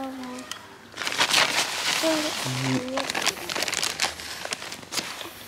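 A plastic bag rustles close by.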